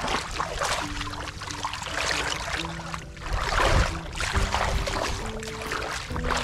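Feet squelch and slosh through wet mud.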